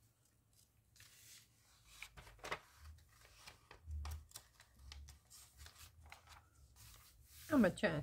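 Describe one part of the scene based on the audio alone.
Glossy magazine pages rustle and flap as they are turned.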